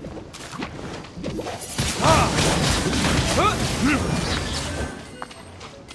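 Magical blasts and whooshes crackle loudly during a fight.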